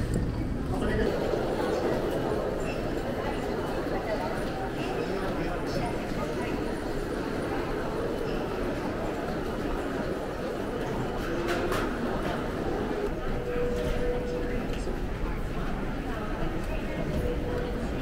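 Footsteps echo through a large busy hall.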